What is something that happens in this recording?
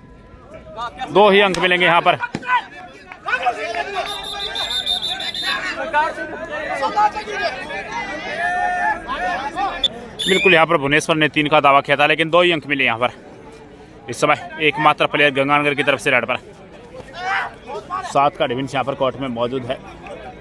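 A young man chants rapidly and loudly, close by.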